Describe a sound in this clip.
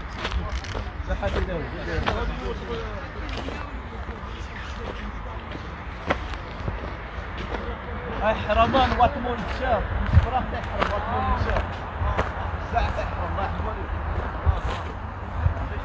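A man talks close by.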